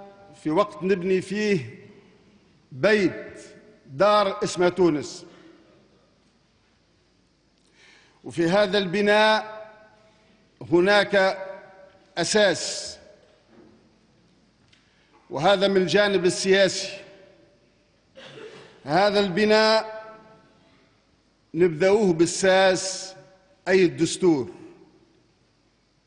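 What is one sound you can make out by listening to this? A middle-aged man speaks calmly into a microphone in short bursts with pauses.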